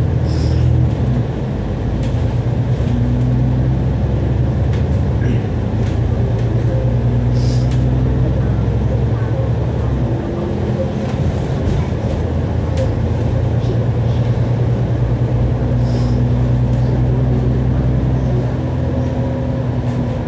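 A diesel double-decker bus engine drones under way, heard from the upper deck.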